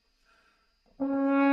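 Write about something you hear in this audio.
A French horn plays a loud, steady note up close.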